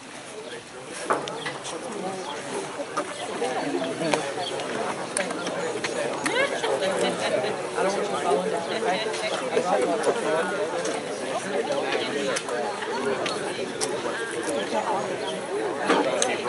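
A man speaks into a microphone over loudspeakers outdoors.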